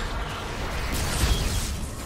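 A heavy gun fires rapidly.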